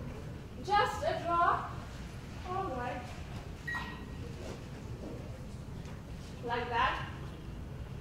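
A young woman speaks with emotion in a room, heard from the audience.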